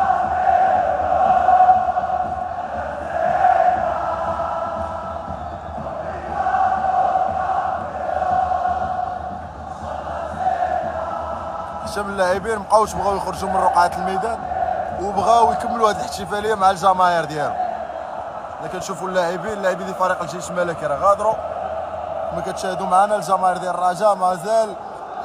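A huge stadium crowd chants and sings in unison, echoing across the open stands.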